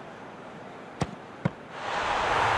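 A football is kicked with a sharp thud.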